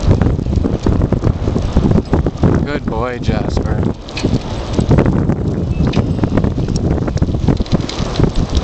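Bicycle tyres roll steadily over pavement.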